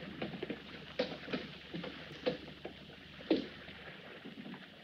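A man's footsteps knock on wooden boards.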